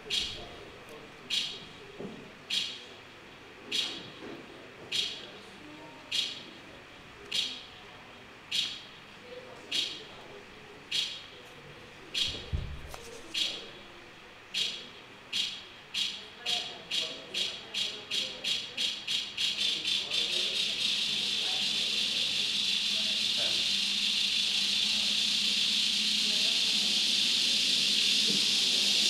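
Short electronic pulses repeat, speeding up until they merge into a steady high hiss.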